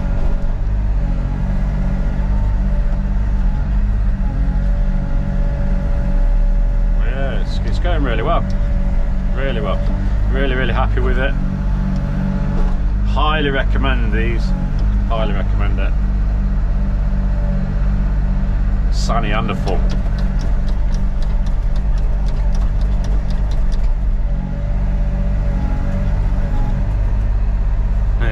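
Excavator hydraulics whine as the arm moves.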